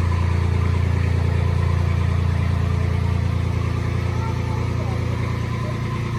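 An old car engine idles with a low, steady, rapid chugging.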